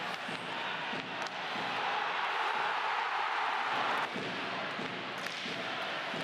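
A puck clacks against sticks.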